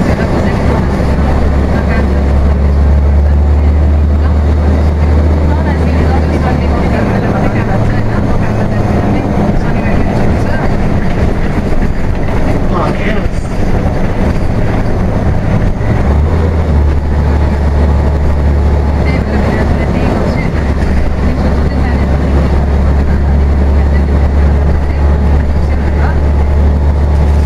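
A bus body rattles and rumbles over the road.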